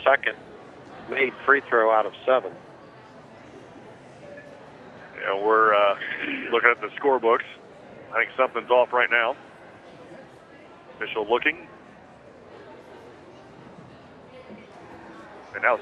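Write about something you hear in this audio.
A seated crowd murmurs quietly in an echoing gym.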